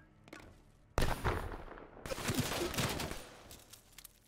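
Gunfire rings out in loud, sharp bursts.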